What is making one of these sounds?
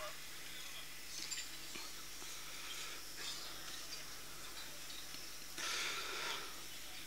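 A man recites slowly into a microphone, heard through loudspeakers.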